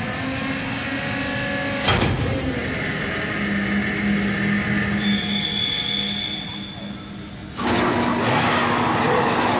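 Heavy boots clank on a metal grating.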